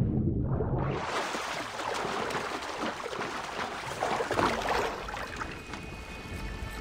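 Water sloshes and splashes as a swimmer surfaces and climbs out.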